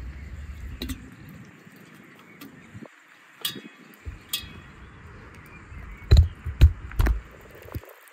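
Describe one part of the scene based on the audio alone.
Chunks of raw meat drop into glass jars, knocking against the glass.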